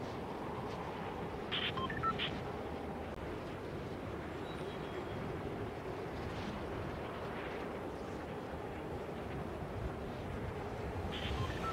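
Wind rushes steadily.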